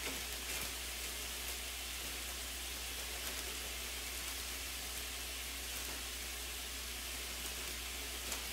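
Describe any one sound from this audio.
Meat sizzles in a frying pan.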